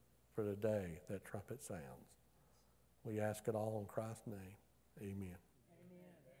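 A middle-aged man speaks calmly into a microphone in a reverberant room.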